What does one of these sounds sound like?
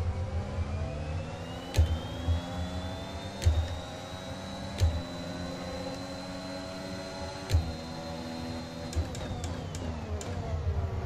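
A racing car engine screams loudly, rising in pitch as the car speeds up and dropping as it slows.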